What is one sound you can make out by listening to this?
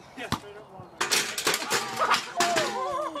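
A metal folding chair clatters onto concrete.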